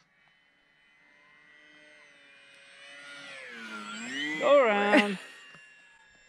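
A drone's motors whine, rising in pitch as it takes off.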